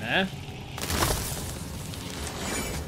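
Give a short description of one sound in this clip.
A loud magical blast bursts and crackles.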